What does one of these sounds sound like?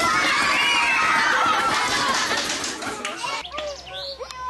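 A woman speaks up over a chattering crowd.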